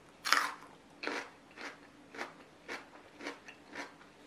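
A young woman chews wetly close to a microphone.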